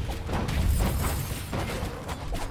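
A magic blast explodes with a deep rumbling boom.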